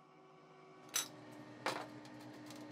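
Metal pieces clank against a metal table.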